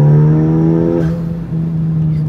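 A turbocharged sports car engine drops in pitch as the gear changes up.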